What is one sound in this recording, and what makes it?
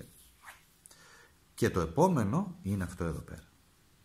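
A playing card is laid softly on a table.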